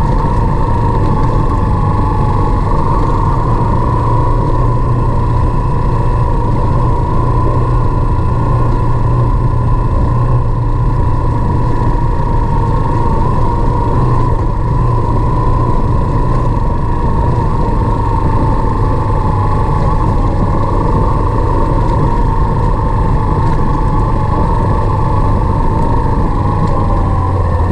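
Wind rumbles loudly against the rider.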